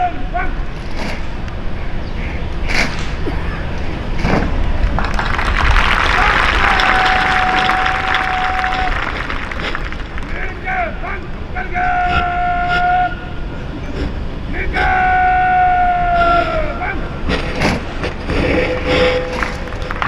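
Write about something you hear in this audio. Soldiers slap and clack their rifles sharply in unison.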